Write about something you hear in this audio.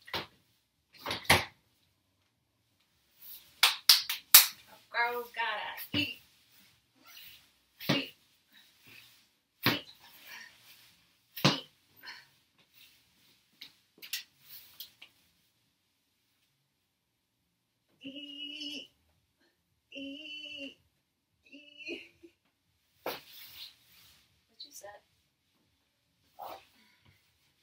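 A woman's feet thump on a wooden floor as she jumps and lands.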